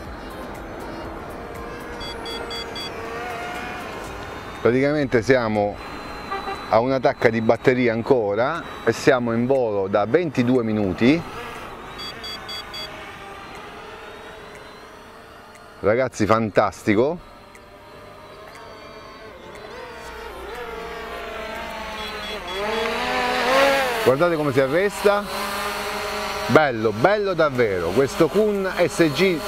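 A small drone buzzes overhead, growing louder as it flies close.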